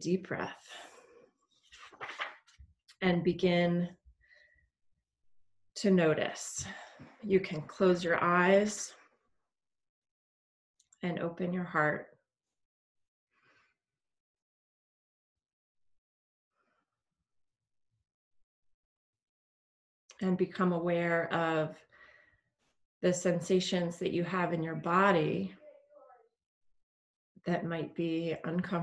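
A woman speaks calmly and slowly into a close microphone, with long pauses.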